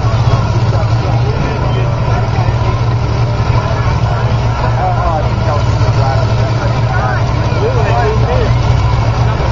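A heavy engine roars and rumbles loudly, close by.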